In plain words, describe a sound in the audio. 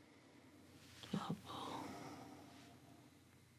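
A woman speaks softly and close by.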